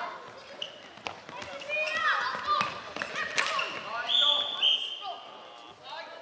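Sneakers squeak on the hard floor.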